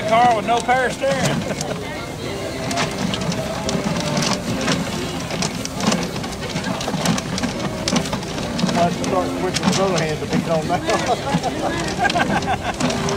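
Paper tickets rustle and tumble inside a spinning plastic drum.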